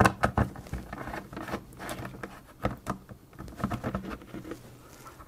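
Plastic clicks and knocks as hands press on a small case.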